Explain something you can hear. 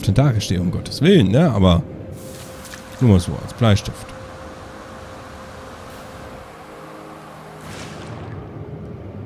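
Water laps and splashes softly.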